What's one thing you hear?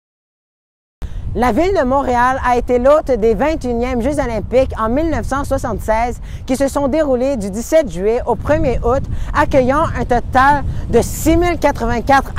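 A young boy speaks with animation close to the microphone.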